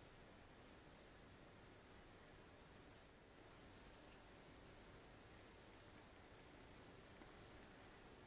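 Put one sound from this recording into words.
A small bat laps softly at food on a spoon.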